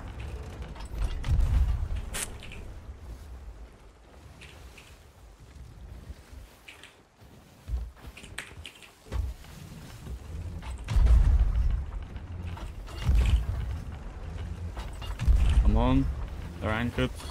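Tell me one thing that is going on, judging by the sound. A cannon fires with deep, heavy booms.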